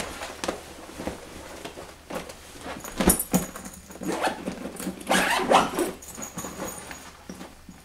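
A case thumps and clicks as it is packed.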